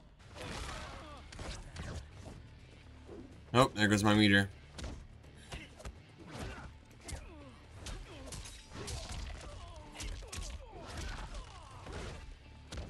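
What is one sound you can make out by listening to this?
Punches and kicks land with sharp smacks and thuds.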